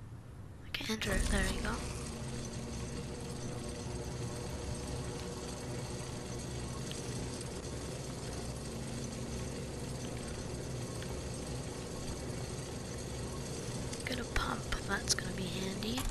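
A zipline hums and rattles steadily.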